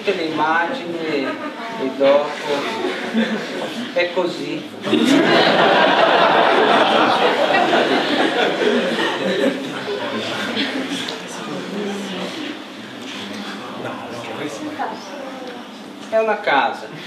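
A man talks calmly to an audience, heard through a loudspeaker in a large room.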